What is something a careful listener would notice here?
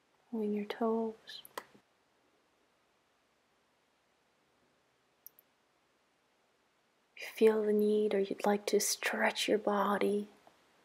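A woman speaks slowly and calmly in a soft, drawn-out voice.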